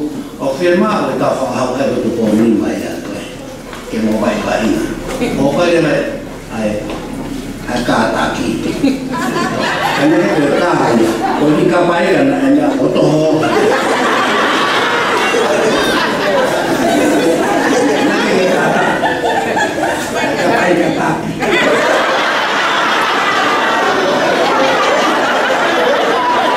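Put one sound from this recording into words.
An elderly man preaches with animation through a microphone.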